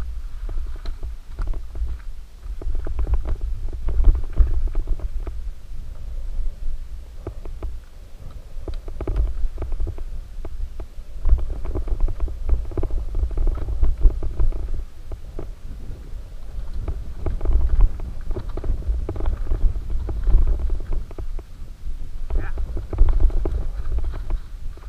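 Bicycle tyres crunch and skid over a dirt trail.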